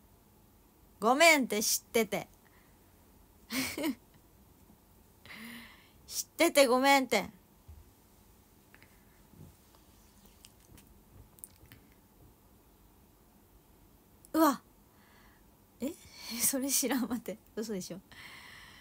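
A young woman speaks close by in short bursts, with pauses between.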